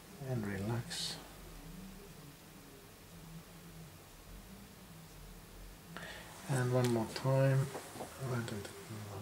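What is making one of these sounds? A woman talks calmly up close.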